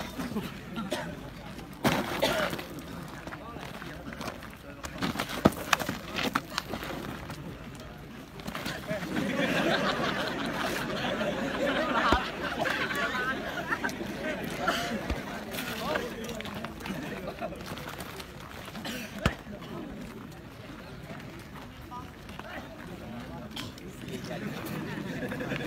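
A crowd of young men chatters and laughs outdoors.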